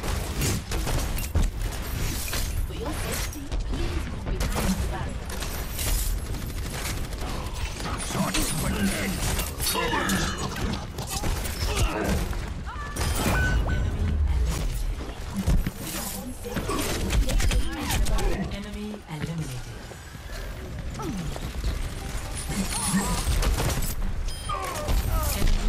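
Rapid gunfire and explosions boom throughout a fast-paced fight.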